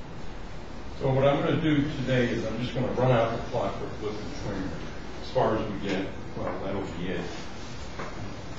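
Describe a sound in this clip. An elderly man lectures calmly.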